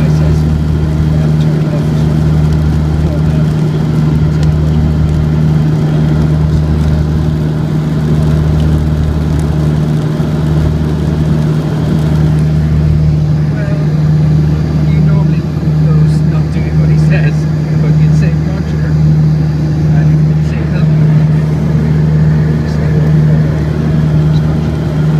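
An aircraft engine drones steadily with a low, pulsing hum.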